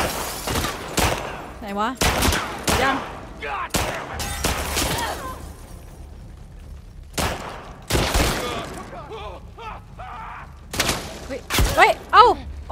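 Gunshots crack loudly and echo through a room.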